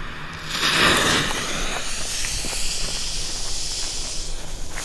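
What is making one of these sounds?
Firework sparks crackle and fizz as they fall.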